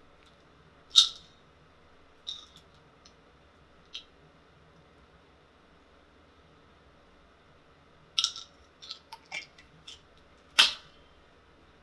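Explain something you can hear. Small hard objects click and rattle in a plastic container.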